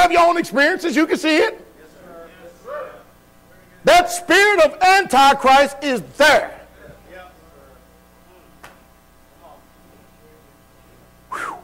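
A man preaches loudly and with animation through a microphone in a hall with echo.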